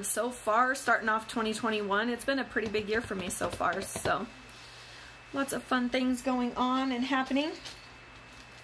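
A young woman speaks calmly, close to the microphone.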